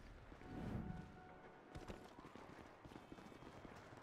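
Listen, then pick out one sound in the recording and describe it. Footsteps patter on paving.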